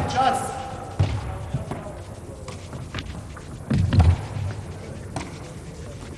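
A ball thuds as it is kicked and bounces on a hard floor.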